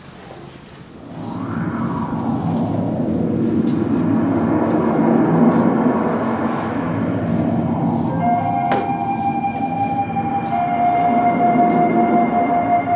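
Music plays through loudspeakers in a room.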